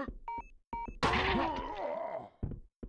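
A blade strikes flesh with a wet, squelching hit.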